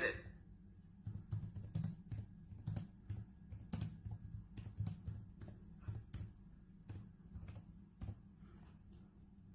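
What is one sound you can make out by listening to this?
Fingers tap on a laptop keyboard in quick, uneven clicks.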